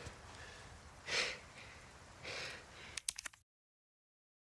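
A man groans and gasps hoarsely.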